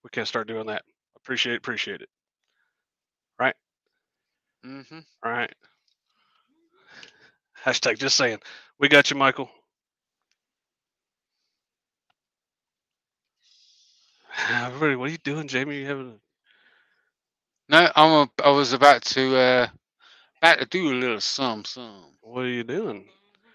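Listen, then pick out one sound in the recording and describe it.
A man talks casually into a close microphone, in short bursts with pauses.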